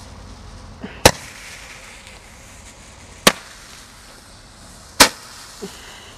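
Firework shots pop loudly outdoors.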